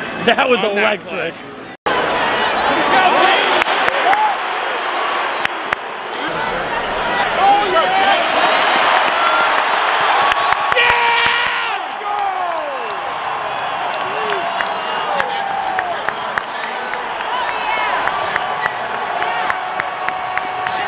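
A huge stadium crowd roars and cheers outdoors.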